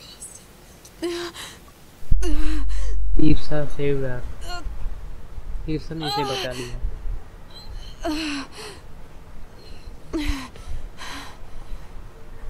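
A young woman speaks with strain close by, breathing hard.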